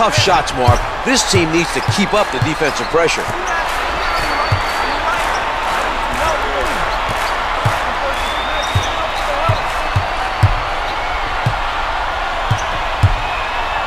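A crowd murmurs and cheers steadily in a large echoing arena.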